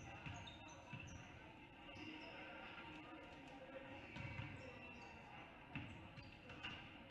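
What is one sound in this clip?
Basketballs bounce with hollow thuds in a large echoing gym.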